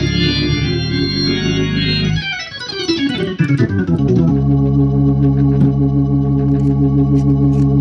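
An organ plays loud, sustained chords.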